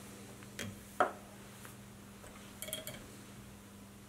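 A metal vise clicks and knocks as it is turned.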